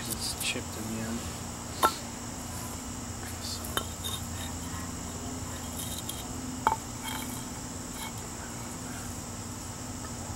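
Bricks knock and clack against each other.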